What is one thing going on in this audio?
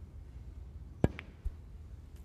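A cue sharply strikes a snooker ball.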